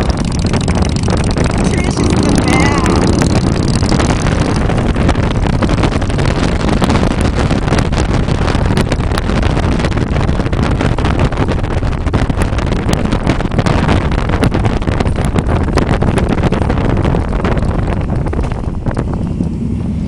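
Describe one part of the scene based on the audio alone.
Wind buffets loudly across the microphone.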